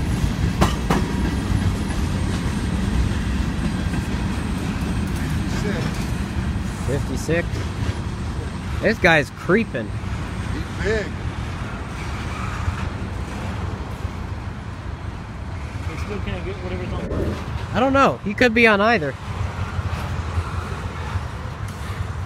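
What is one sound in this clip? A freight train rumbles and clatters past on the tracks.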